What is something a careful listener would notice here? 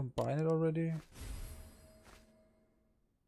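A short menu chime sounds as two items are combined.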